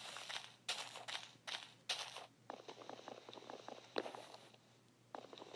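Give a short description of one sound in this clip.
Footsteps crunch on grass and leaves.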